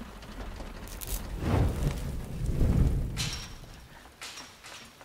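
Heavy rain pours down outdoors.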